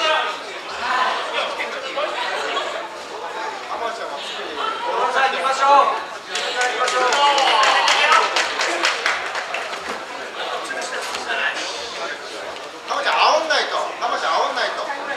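A crowd of spectators shouts and cheers in a large echoing hall.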